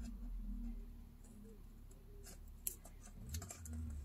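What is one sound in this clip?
Scissors snip through paper.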